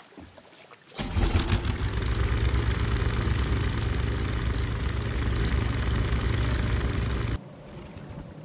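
A small boat motor drones steadily.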